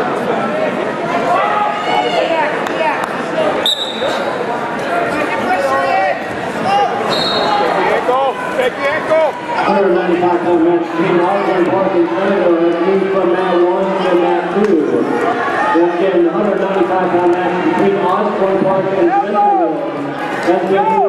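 A crowd shouts and cheers in a large echoing gym.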